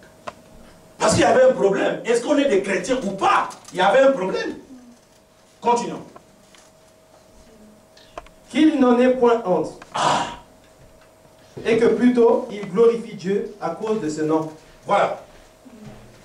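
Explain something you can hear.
A man preaches loudly and with animation.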